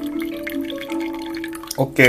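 Water pours and splashes into a cup.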